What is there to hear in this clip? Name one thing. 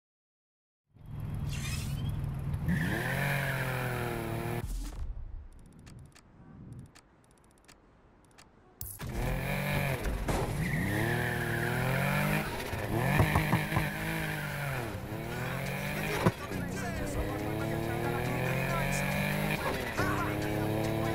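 A car engine idles and revs loudly, rising and falling in pitch.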